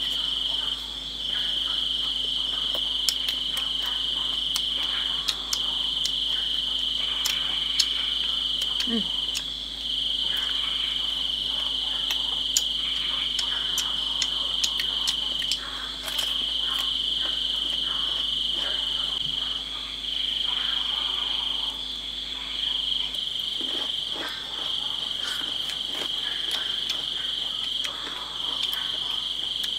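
Someone crunches on fresh raw vegetables while chewing.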